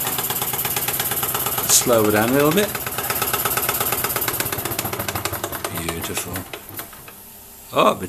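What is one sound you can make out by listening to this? A small steam engine chuffs rapidly and steadily, then slows and fades.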